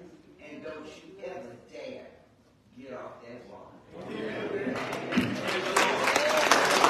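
A woman speaks with feeling into a microphone in an echoing hall.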